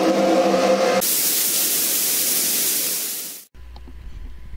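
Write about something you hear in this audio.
Loud static hisses.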